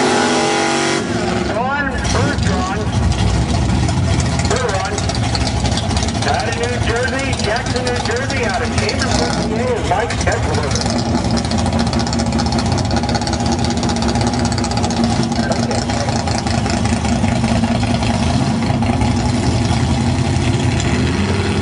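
Race car engines idle with a heavy, lumpy rumble.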